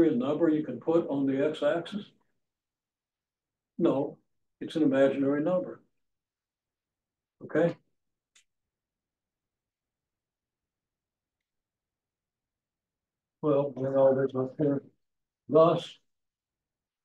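An elderly man speaks calmly through a microphone, in short bursts with pauses.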